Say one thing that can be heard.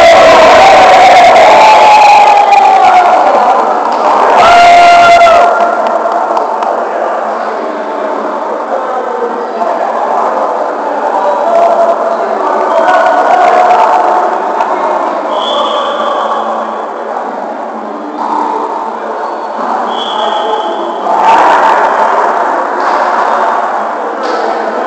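A crowd of men and women talk and call out in a large echoing hall.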